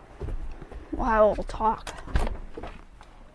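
A door opens and closes.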